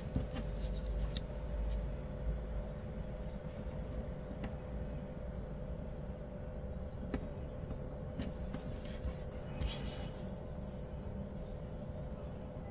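Paper rustles and crinkles as a sheet is handled.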